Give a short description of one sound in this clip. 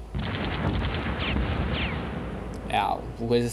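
Tanks rumble and guns fire in a noisy battle.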